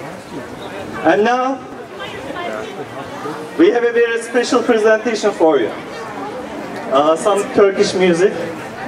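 A man speaks with animation through a loudspeaker outdoors.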